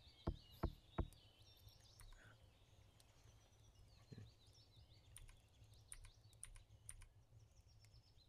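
Keyboard keys click as they are pressed.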